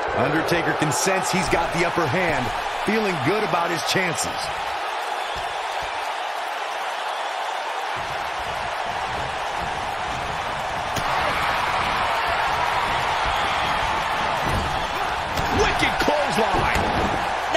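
Bodies slam hard onto a wrestling ring mat with loud thuds.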